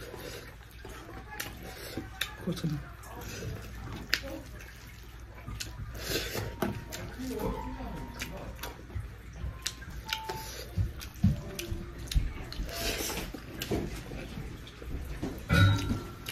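Fingers squish and rustle through food on a metal tray.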